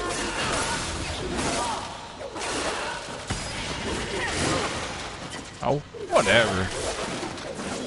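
Blades slash and strike against a monster's hide in quick hits.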